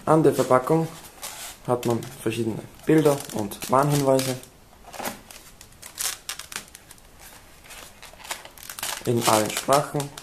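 A cardboard box scrapes and rubs as hands turn it.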